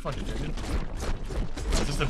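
A sword swooshes through the air with a sharp slash.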